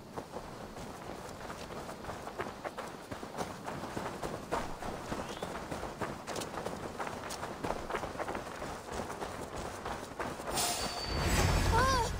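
Footsteps crunch along a dirt path.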